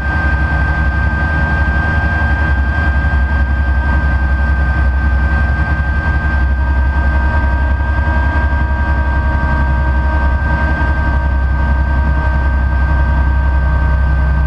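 An aircraft engine drones loudly and steadily from inside the cabin.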